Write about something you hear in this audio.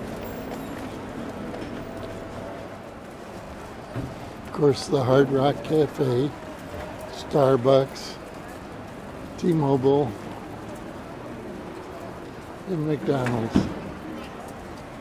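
Traffic and a crowd murmur steadily outdoors.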